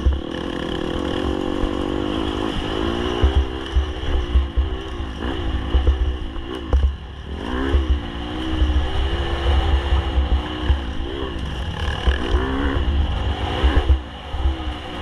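A dirt bike engine revs and whines up and down close by.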